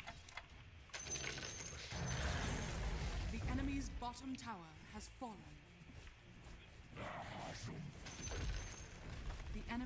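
Fantasy battle sound effects whoosh and crackle.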